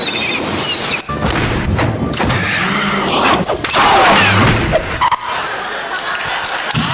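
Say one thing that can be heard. An audience laughs and applauds in a large hall.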